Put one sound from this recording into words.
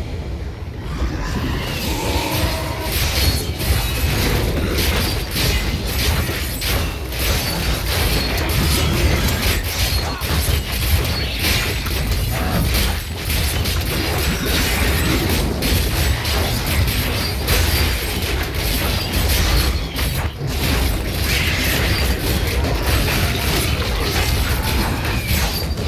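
Game monsters screech and roar.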